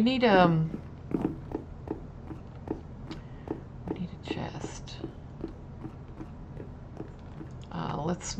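Footsteps tap steadily on stone.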